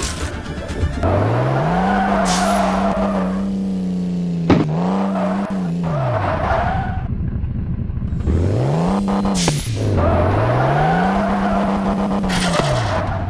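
A toy-like car engine revs up and down repeatedly.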